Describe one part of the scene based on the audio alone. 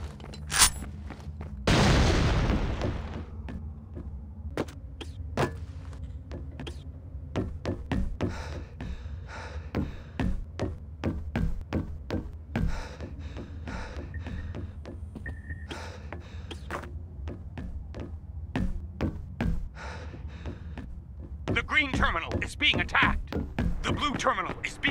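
Footsteps clank quickly on metal stairs and floors.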